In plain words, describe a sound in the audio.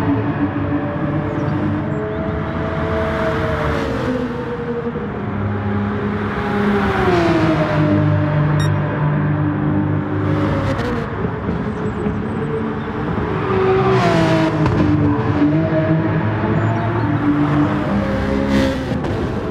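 A racing car engine roars loudly, rising and falling in pitch as it shifts gears and brakes.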